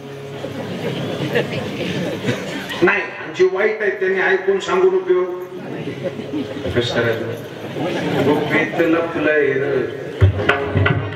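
A man speaks and sings with animation through a microphone, heard over loudspeakers.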